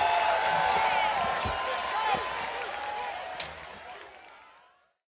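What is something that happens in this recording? A large crowd cheers and whistles, then fades away.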